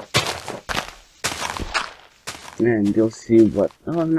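Earth is dug away in short crunching scrapes.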